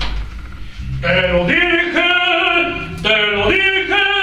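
A man sings loudly nearby in a drawn-out, theatrical voice.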